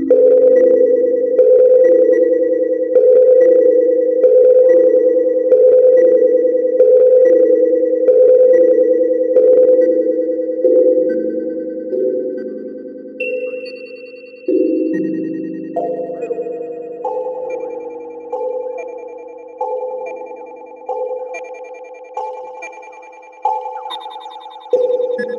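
Short pitched electronic tones repeat in a steady rhythm, shifting in pitch and texture.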